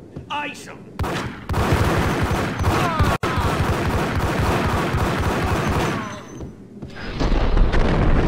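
Pistols fire rapid bursts of gunshots indoors.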